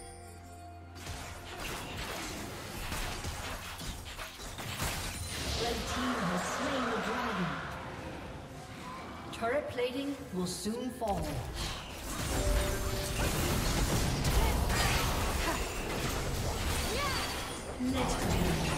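Video game spells whoosh and crackle.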